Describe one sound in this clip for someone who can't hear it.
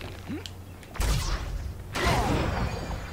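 An icy blast bursts with a crackling crash.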